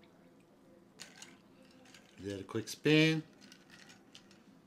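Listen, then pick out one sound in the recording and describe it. A spoon stirs and clinks in a glass.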